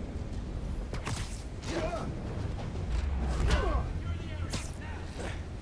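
Heavy metallic blows clang and thud.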